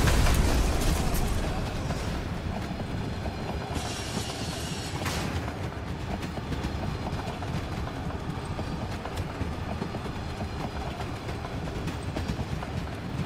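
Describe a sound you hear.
A mine cart rumbles and rattles along metal rails.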